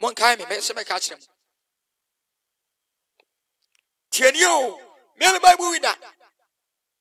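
A man speaks with animation over an online call, in short bursts.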